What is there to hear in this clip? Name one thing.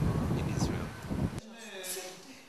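A man speaks calmly into a microphone outdoors.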